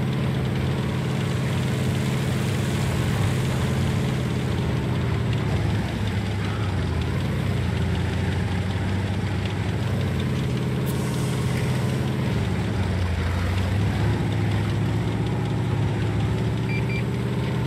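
A tank engine rumbles steadily and changes pitch as the tank drives.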